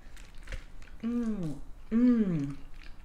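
A young woman hums twice, close to the microphone, with her mouth closed.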